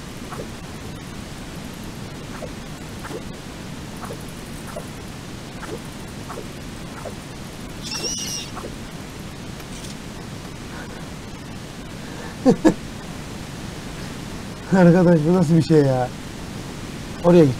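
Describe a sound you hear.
Water rushes and roars steadily nearby.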